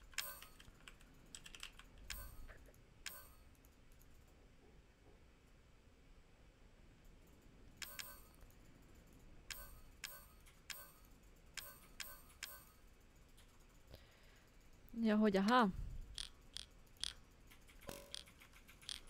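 Short electronic menu clicks sound every second or so.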